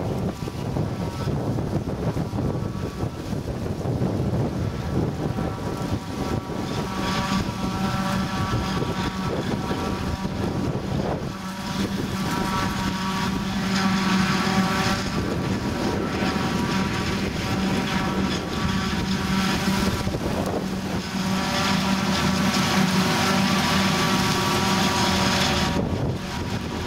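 A forage harvester roars loudly as it chops maize stalks.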